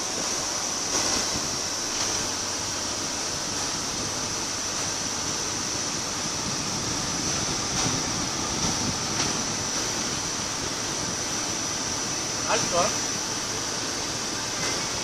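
A car drives steadily along a highway, with a constant road and engine rumble from inside.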